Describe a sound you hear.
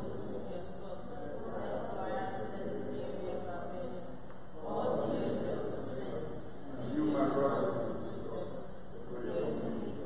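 A man reads aloud through a microphone in a large echoing hall.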